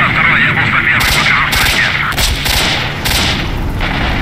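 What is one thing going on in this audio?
Rifle shots fire in quick bursts.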